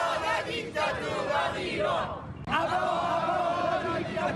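A crowd of protesters chants loudly outdoors.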